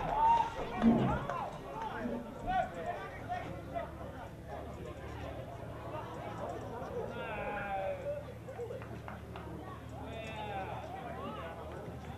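Young players shout calls to one another across an open field.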